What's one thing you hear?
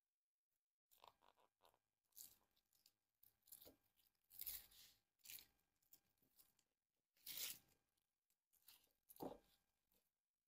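A plastic string rustles and crinkles against leaves as it is tied tight.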